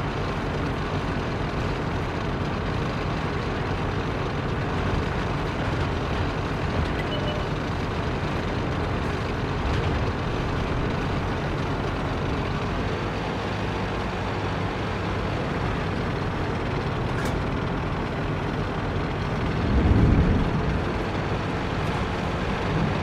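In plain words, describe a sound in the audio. A tank engine rumbles steadily as the tank drives over rough ground.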